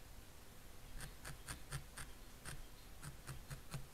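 A felting needle stabs repeatedly into wool with soft, quick, rhythmic thuds.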